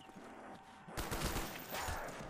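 A rifle fires loud shots.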